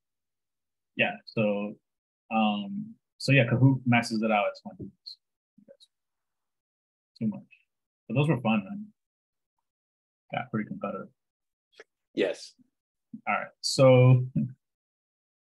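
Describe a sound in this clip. A man talks calmly into a close microphone, in short bursts with pauses.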